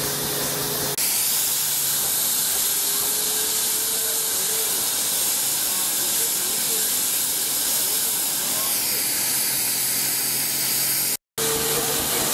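A steam engine hisses loudly and steadily.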